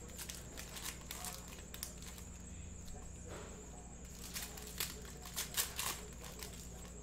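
Cards shuffle and slap together in hands.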